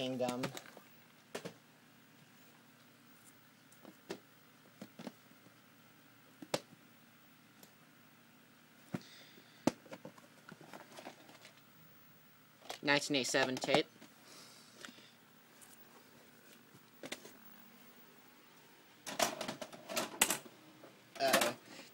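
Plastic tape cases click and clatter as hands handle them.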